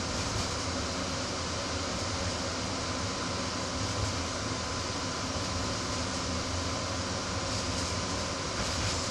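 Wheels clatter rhythmically over rail joints.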